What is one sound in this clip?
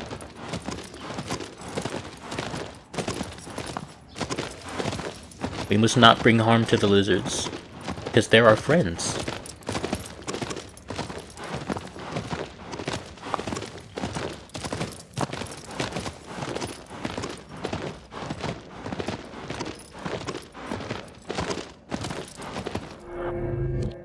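A horse gallops steadily over hard, stony ground with rhythmic hoofbeats.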